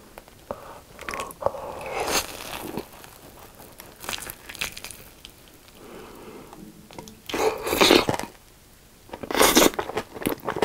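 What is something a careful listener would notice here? A young man chews and slurps food noisily close to a microphone.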